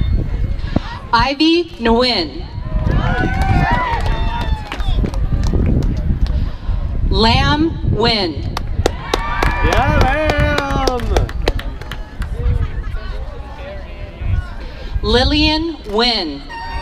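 A crowd cheers and whoops loudly in short bursts.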